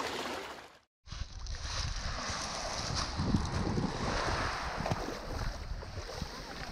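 Small waves wash gently onto a pebbly shore.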